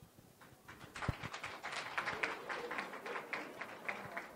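A woman speaks into a microphone over a loudspeaker, announcing.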